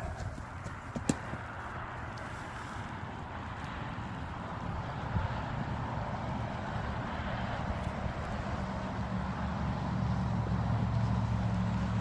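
Hooves thud softly on sand as a horse trots.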